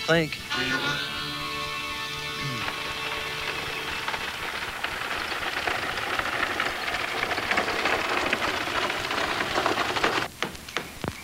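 A horse gallops along a dirt track.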